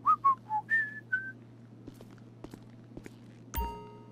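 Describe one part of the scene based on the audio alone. Footsteps tread on a hard tiled floor.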